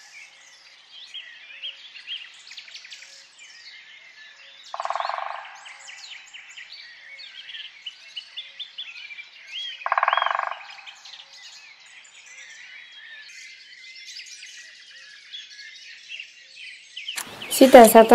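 A woodpecker chick calls repeatedly from close by.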